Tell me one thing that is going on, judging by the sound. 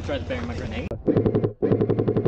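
An airsoft gun fires a rapid burst of shots.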